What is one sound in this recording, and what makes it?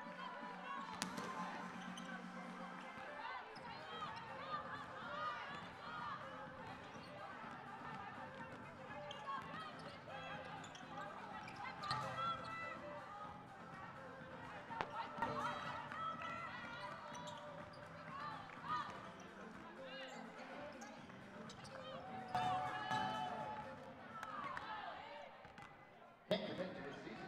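Basketballs bounce with dull thuds on the court.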